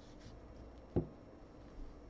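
A stack of cards taps against a table.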